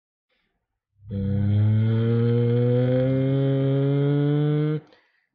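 A man holds a long, slowly rising sung note.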